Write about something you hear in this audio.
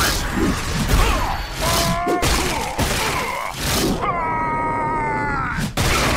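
A large creature groans in pain.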